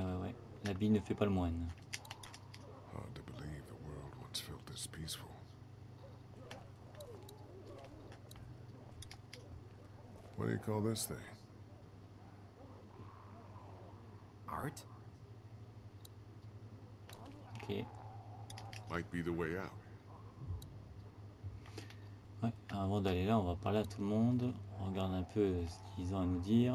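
A man speaks calmly and quietly.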